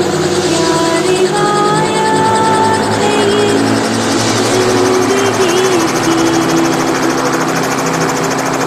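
A helicopter engine runs with a steady whine and rotor thump nearby.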